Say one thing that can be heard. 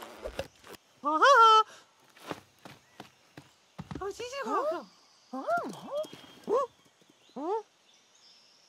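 A cartoon monkey chatters and squeals excitedly.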